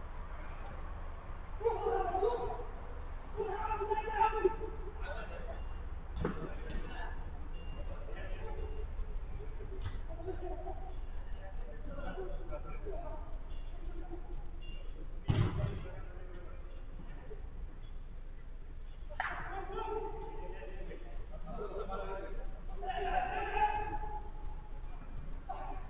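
Men shout and call out to each other from a distance.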